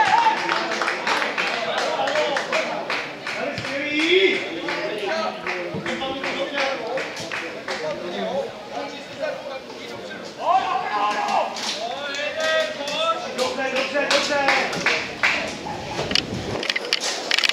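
Men shout and call out to each other outdoors at a distance.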